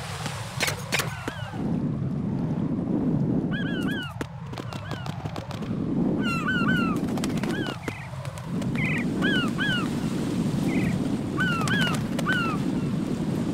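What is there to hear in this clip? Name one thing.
Seagulls cry in short squawks, over and over.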